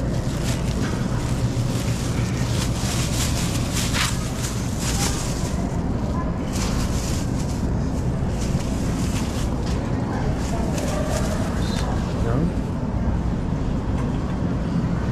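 A shopping cart rattles as its wheels roll over a hard floor.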